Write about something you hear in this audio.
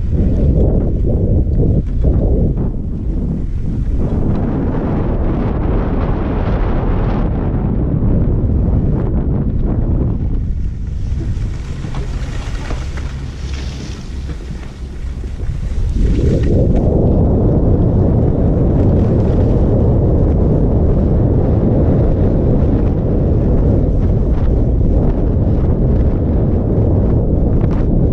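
Wind rumbles past a close microphone.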